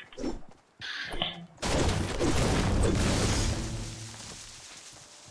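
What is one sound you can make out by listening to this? A pickaxe strikes a tree with heavy thuds.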